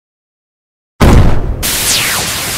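A tank cannon fires a glowing energy shot with a loud whoosh.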